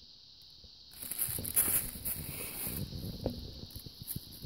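A plastic bag rustles and crinkles as a kitten pounces on it.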